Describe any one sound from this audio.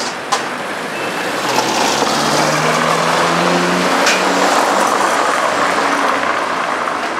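A small truck and a car drive up closer, their engines growing louder.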